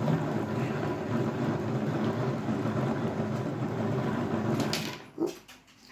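A hand-cranked yarn winder whirs and rattles as it spins quickly.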